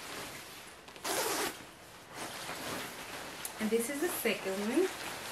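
A plastic bag crinkles loudly.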